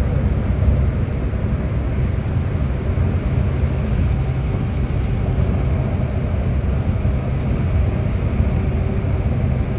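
A bus engine rumbles steadily from inside the bus.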